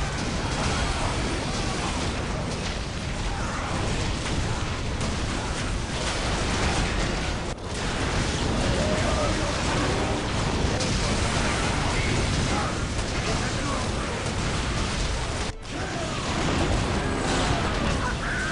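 Guns fire in rapid bursts during a battle.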